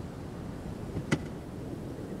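A car door unlatches and opens with a click.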